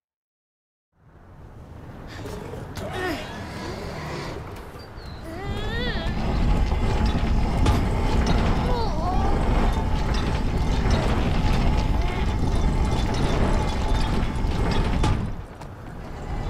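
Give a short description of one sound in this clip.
A heavy lift rumbles and creaks as it slowly moves.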